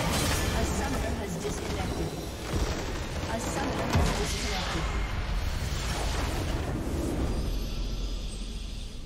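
Magic spell effects crackle, whoosh and clash in a hectic fight.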